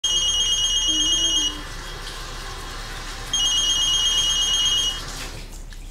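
A mobile phone rings with a high electronic trill close by.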